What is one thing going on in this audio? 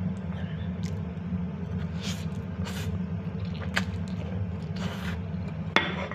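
A man slurps noodles loudly.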